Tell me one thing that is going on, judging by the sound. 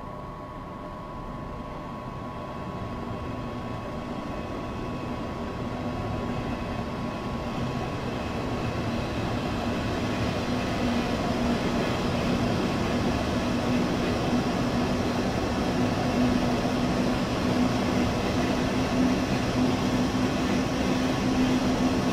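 Train wheels roll along the rails, growing louder as the train speeds up.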